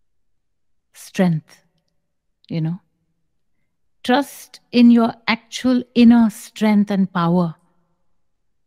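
A woman speaks calmly and slowly into a close microphone, with long pauses.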